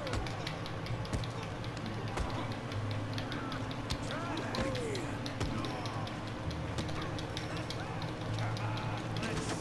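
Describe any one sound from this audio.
Fists thud against a body in a brawl.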